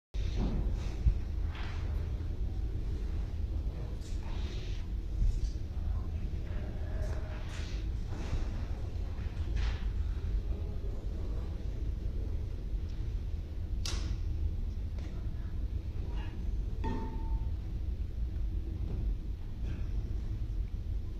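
A brass band plays in a large hall, heard from a distance.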